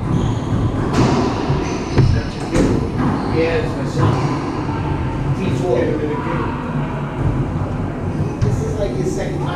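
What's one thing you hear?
A ball smacks off walls and rackets, echoing loudly in a hard, echoing room.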